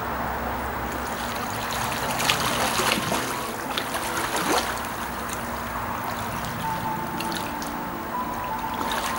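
Water splashes as a man swims.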